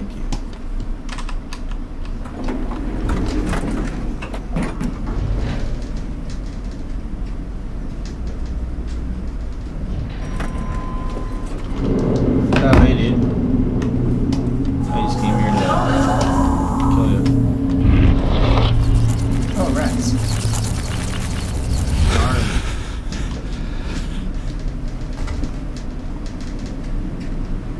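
A young man talks quietly into a close microphone.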